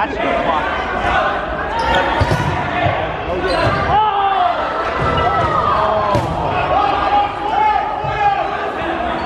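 A crowd of young people cheers and shouts in a large echoing hall.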